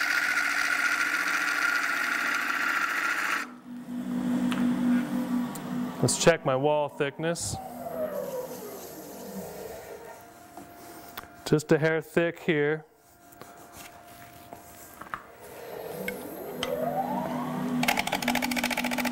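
A lathe motor hums, slows down and later speeds up again.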